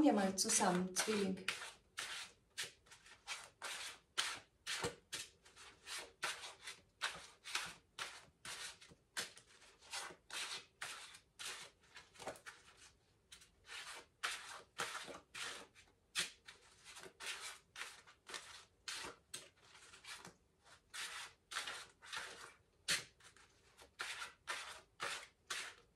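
Long fingernails tap and scratch rapidly on a hard object, close up.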